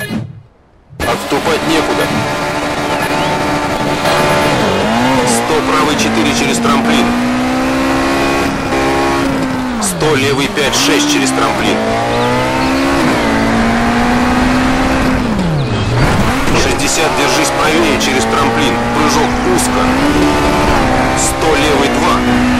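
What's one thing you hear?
A rally car engine revs hard through the gears.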